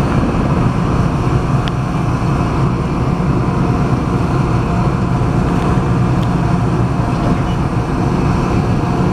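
Train wheels click and squeal on the rails.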